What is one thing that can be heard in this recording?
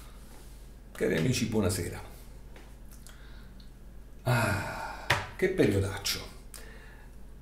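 A middle-aged man speaks calmly close to a microphone.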